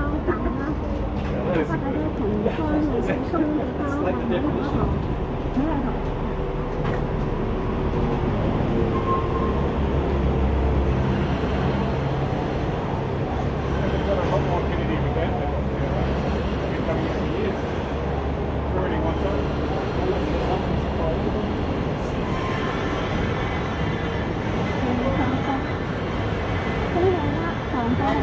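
Footsteps shuffle along a pavement as a crowd walks outdoors.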